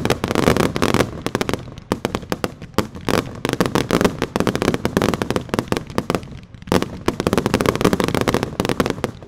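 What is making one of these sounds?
Fireworks boom as they burst.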